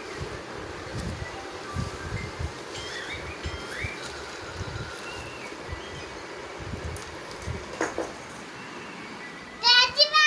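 A young child babbles nearby.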